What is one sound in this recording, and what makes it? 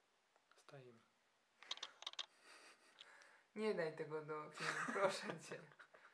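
A woman speaks softly close to a microphone.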